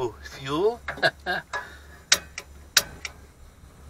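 A lighter clicks several times to light a gas burner.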